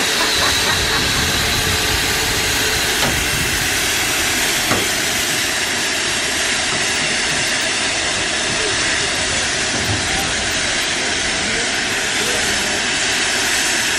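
Steam hisses loudly and steadily from a steam locomotive.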